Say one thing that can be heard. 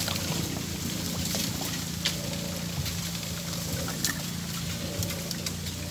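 A fishing reel clicks as a line is cast and wound in.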